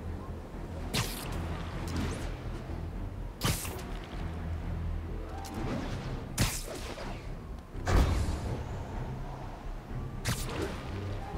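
Web lines snap with sharp thwips.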